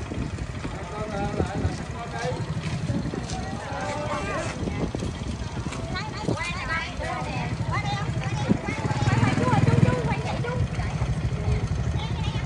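Several women and men talk and chatter nearby outdoors.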